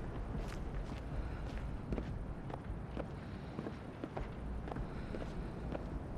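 Footsteps run across wooden boards.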